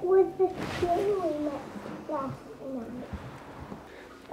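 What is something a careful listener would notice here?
A young child talks in a high voice nearby.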